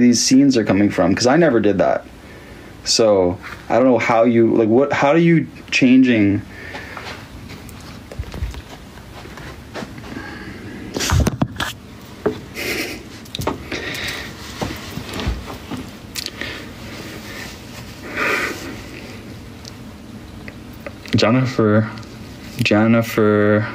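A young man talks with animation close to a phone microphone.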